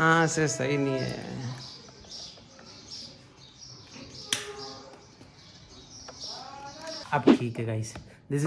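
A plug clicks into a wall socket.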